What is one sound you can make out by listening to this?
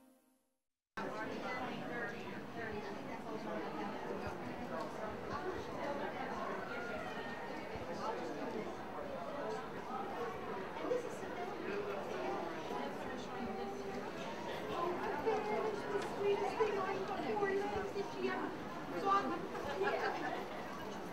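A crowd of people chatter in a busy indoor hall.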